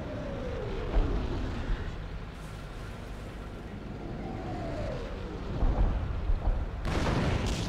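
Shells explode with heavy booms.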